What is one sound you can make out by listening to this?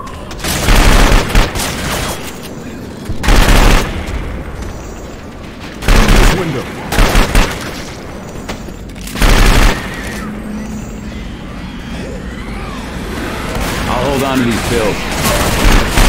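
Zombies snarl and groan nearby.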